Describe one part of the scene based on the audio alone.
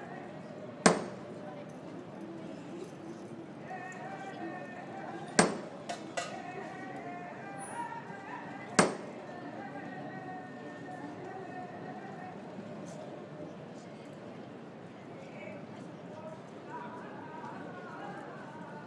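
A crowd of men and women murmurs and chatters nearby, outdoors.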